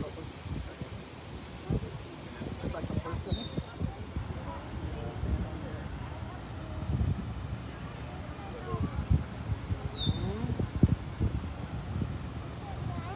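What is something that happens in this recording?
Wind rustles the leaves and bushes outdoors.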